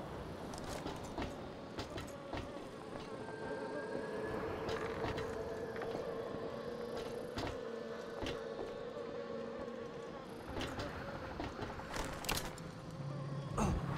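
Footsteps clank on a metal walkway.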